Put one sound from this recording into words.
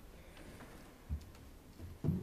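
A wooden bench thumps as someone sits down.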